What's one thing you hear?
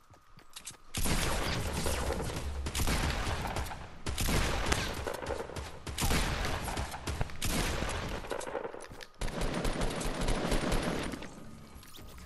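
Gunshots fire in loud, rapid bursts.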